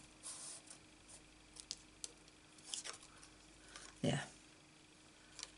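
Paper rustles and slides across a table.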